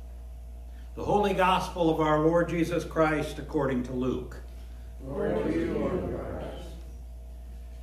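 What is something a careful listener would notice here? An elderly man reads aloud slowly in a calm voice, in an echoing room.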